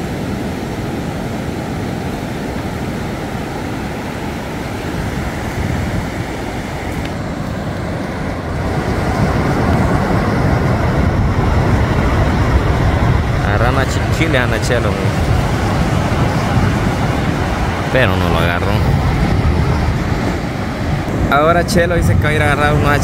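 Ocean waves break and wash steadily onto the shore.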